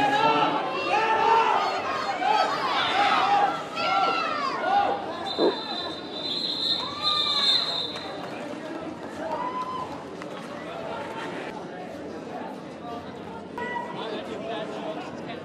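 Roller skate wheels squeak and roll on a hard floor in a large echoing hall.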